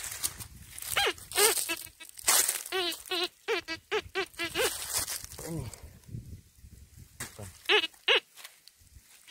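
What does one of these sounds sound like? A metal detector gives warbling electronic beeps.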